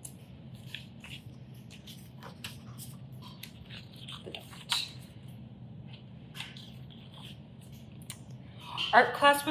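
Paper pages rustle as a book is leafed through.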